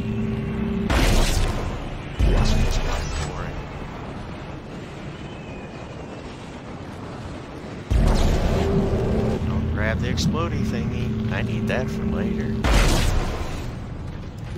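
A heavy weapon fires loud, booming blasts.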